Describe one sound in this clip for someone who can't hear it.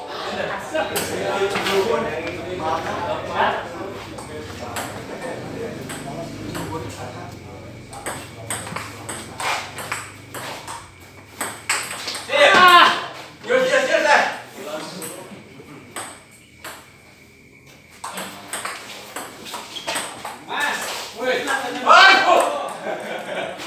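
A ping-pong ball clicks sharply on paddles and a table.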